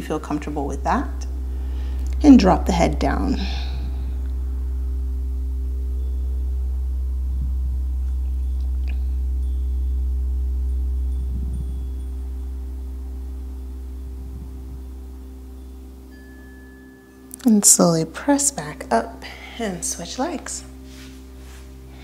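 A young woman speaks calmly and softly, close to a microphone.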